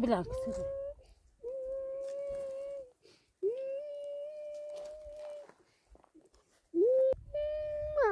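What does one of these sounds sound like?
A young child wails loudly in long, drawn-out cries.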